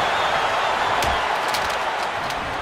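Bodies thud heavily onto a wrestling ring.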